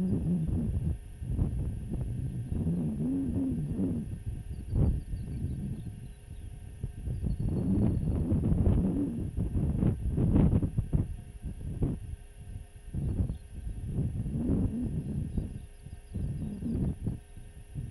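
Strong wind gusts and rumbles across open ground.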